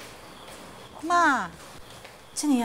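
A young woman asks a question gently.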